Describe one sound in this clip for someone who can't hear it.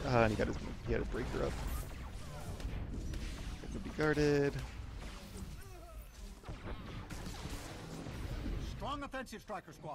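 Explosions burst and rumble.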